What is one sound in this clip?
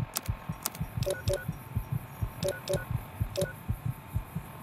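An electronic device gives short, high beeps and clicks.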